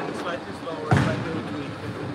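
A bowling ball thuds onto a lane.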